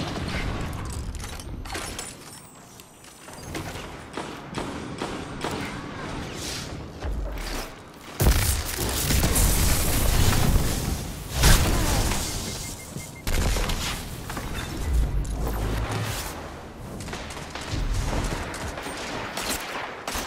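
A hand cannon fires loud gunshots in a video game.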